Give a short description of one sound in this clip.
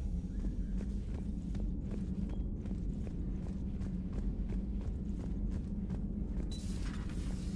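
Footsteps tap steadily on a hard metal floor.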